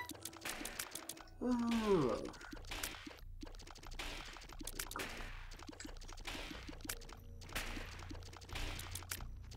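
Cartoonish game sound effects pop and splat in quick succession.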